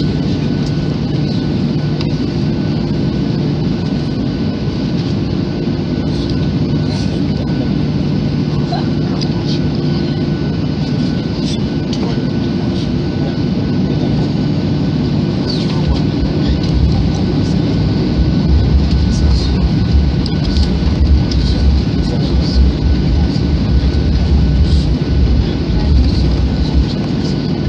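Jet engines hum and whine steadily from inside an aircraft cabin.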